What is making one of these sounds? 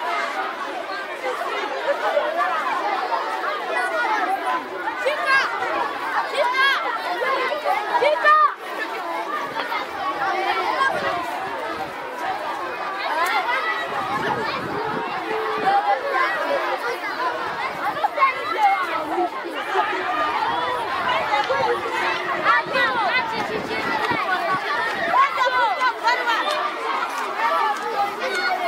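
A large crowd of children shouts and cheers loudly outdoors.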